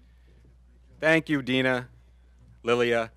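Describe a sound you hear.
A man announces names over a loudspeaker outdoors.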